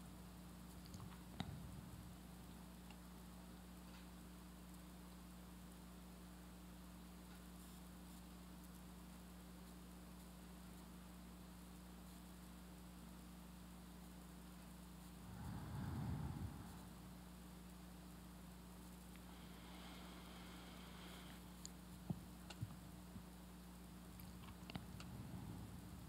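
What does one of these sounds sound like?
An older man speaks softly and slowly into a microphone, with long pauses.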